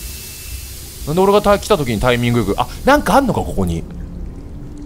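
Water pours and splashes steadily.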